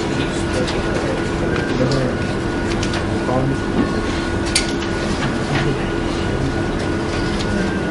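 Paper sheets rustle as pages are turned.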